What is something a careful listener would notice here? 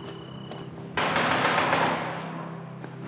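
A heavy door is pushed open.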